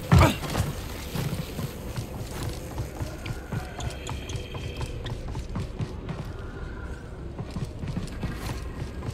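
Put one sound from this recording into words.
Footsteps run quickly across a metal walkway.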